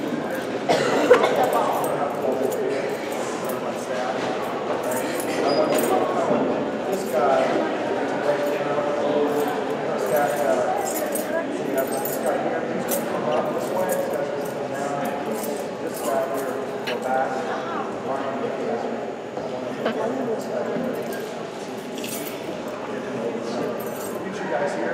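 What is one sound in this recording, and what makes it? A man talks calmly to children close by.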